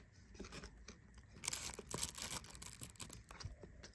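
Chopsticks tap against food in a plastic bag.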